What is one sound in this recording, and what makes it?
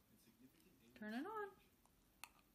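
A dog gives a short whine.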